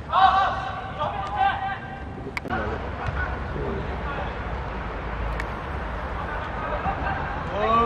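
Young players shout to each other across an open pitch.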